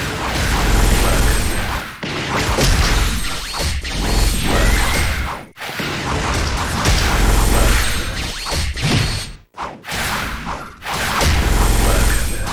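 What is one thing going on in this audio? Energy slashes whoosh and crackle in quick bursts.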